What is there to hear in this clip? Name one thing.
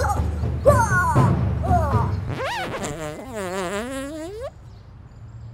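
A young man raps loudly with energy.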